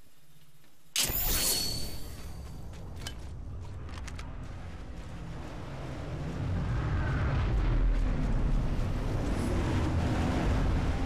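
Footsteps thud quickly on dirt.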